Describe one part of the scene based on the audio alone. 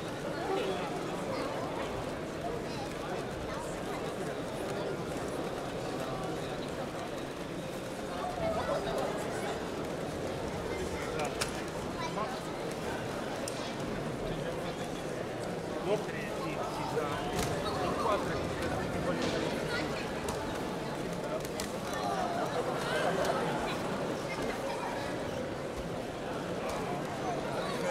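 A crowd of adults and children chatters throughout a large echoing hall.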